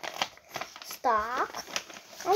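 Another young girl exclaims in a sing-song voice close by.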